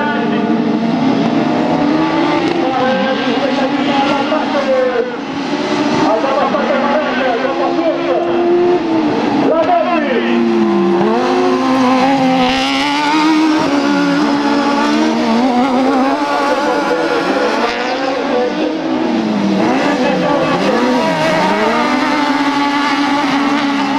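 Tyres skid and spray loose dirt.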